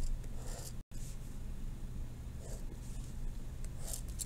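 A marker squeaks and scratches across paper.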